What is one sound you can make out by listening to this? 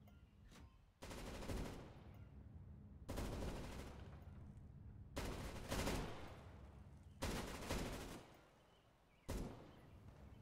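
A rifle fires in loud rapid bursts indoors.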